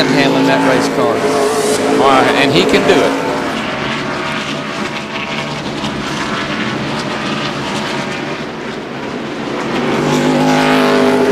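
Race car engines roar loudly at high speed.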